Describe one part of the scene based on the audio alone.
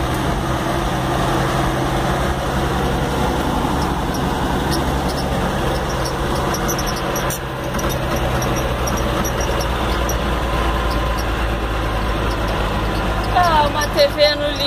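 A bus engine rumbles steadily while driving.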